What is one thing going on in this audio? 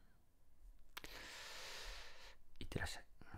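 A man breathes out heavily near a microphone.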